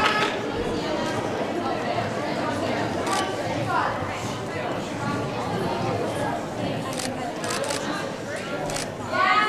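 A gymnast's feet thud on a balance beam.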